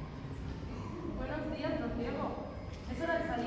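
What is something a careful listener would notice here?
A young woman speaks from a distance.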